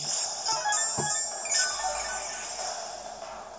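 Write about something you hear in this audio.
A video game chimes with a sparkling effect.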